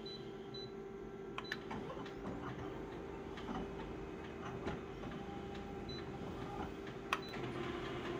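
A finger taps the buttons of a copier control panel.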